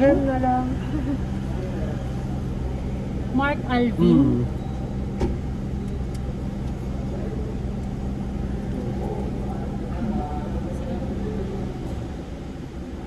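A car engine hums steadily at idle.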